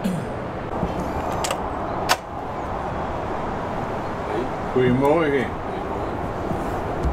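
A door opens.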